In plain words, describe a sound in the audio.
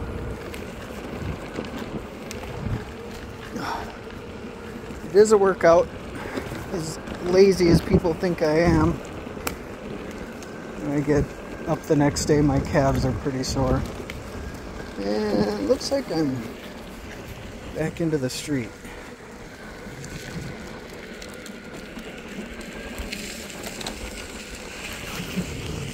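Hard skateboard wheels rumble steadily over a dirt path.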